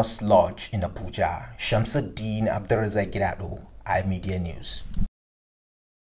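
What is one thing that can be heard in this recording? A man speaks steadily at a short distance.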